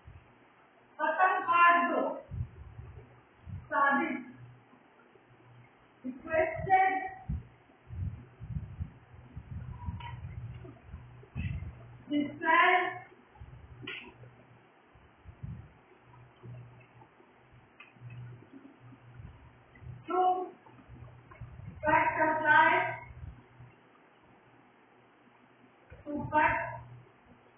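A woman speaks slowly and clearly at intervals, as if reading out.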